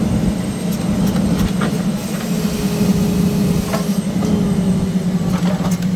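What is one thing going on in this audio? A hydraulic log loader arm whirs as it moves.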